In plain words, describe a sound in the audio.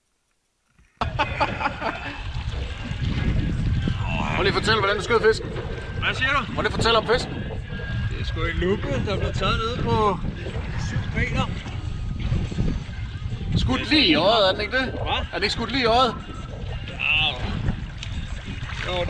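Water sloshes and splashes against a boat's hull.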